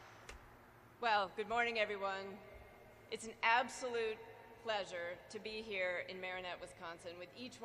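A woman speaks warmly into a microphone over loudspeakers.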